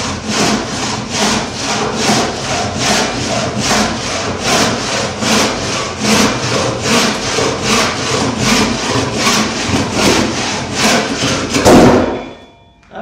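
A hand saw cuts through wood with quick, steady strokes.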